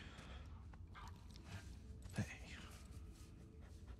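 A man speaks softly and warmly up close.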